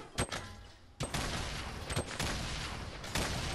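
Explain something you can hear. An explosion booms and roars.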